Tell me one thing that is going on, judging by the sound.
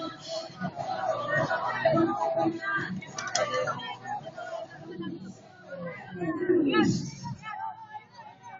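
A group of young women shout a cheer in unison outdoors.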